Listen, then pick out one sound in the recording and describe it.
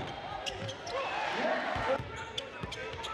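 A crowd in a large echoing gym cheers.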